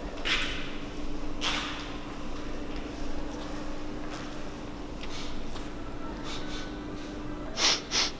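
A mop swishes across a hard floor.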